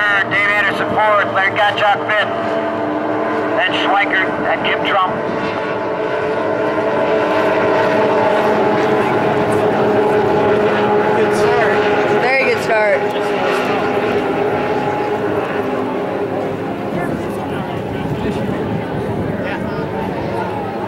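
Racing boat engines roar steadily across the water.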